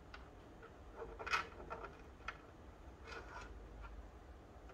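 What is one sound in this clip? A metal drive bracket clinks and rattles in a hand.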